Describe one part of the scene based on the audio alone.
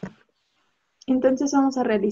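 A woman speaks clearly through an online call.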